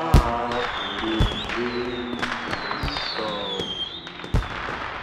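A firework rocket whistles as it rises.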